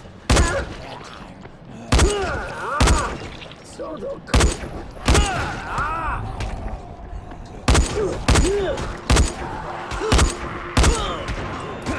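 Single rifle shots fire one at a time, each followed by a ringing echo.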